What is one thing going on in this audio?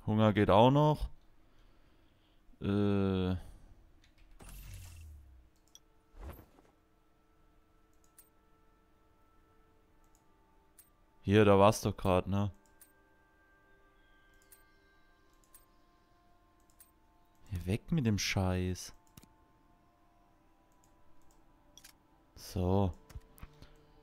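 A man speaks in short bursts into a close microphone.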